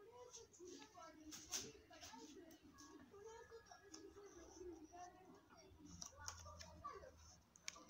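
Small plastic pieces click as hands turn them.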